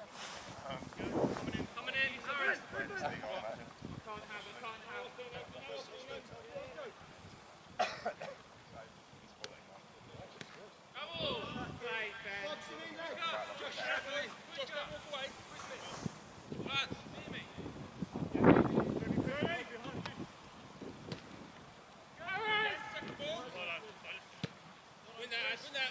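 Men shout to each other from a distance across an open field outdoors.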